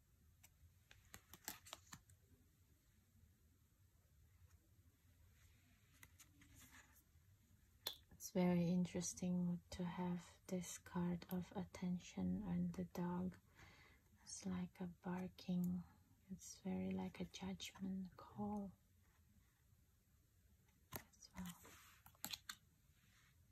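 Cards slide and tap softly against each other.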